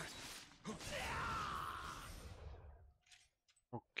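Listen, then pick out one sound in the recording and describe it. Swords clash and slash.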